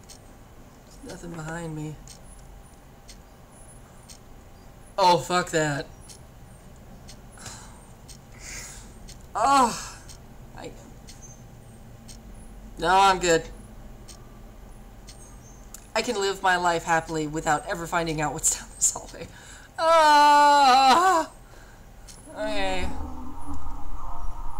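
A young woman talks nervously into a headset microphone, close up.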